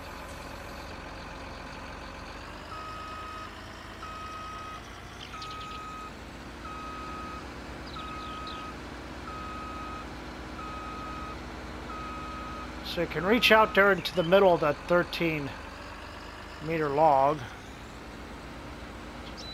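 A heavy vehicle's engine hums steadily.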